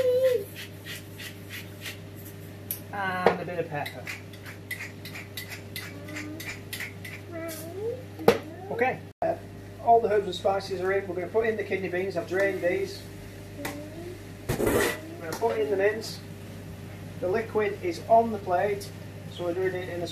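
Food sizzles and crackles in a frying pan.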